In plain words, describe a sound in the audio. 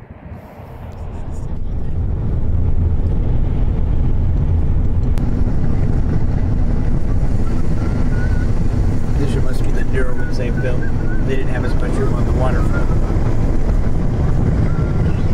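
Wind gusts roughly across the microphone outdoors.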